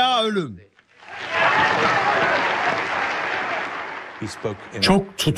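A large audience applauds loudly.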